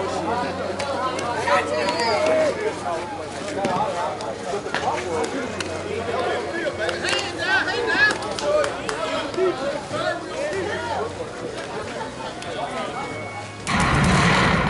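Men and women call out and chatter at a distance outdoors.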